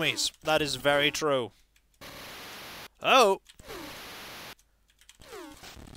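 Retro video game sound effects chirp and blip in short bursts.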